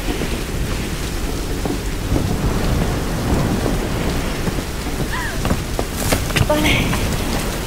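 A waterfall roars steadily nearby.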